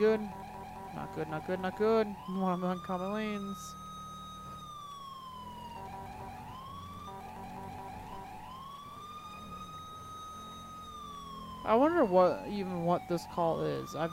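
A police siren wails, slowly rising and falling.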